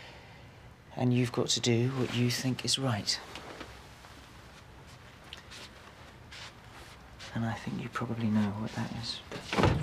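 A man speaks quietly and calmly close by.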